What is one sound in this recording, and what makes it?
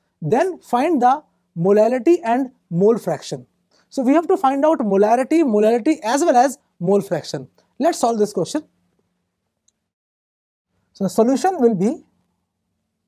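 A man lectures with animation into a close microphone.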